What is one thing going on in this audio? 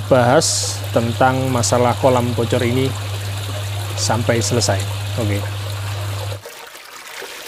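Water splashes steadily into a pond.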